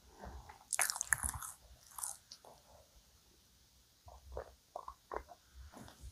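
A young woman gulps milk with loud swallows.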